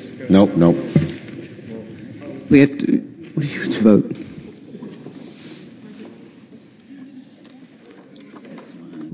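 People murmur quietly in the background.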